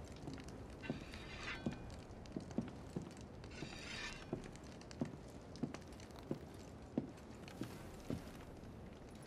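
Footsteps thud softly on a wooden floor at a walking pace.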